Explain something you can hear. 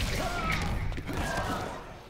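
A fireball whooshes and crackles in a fighting game.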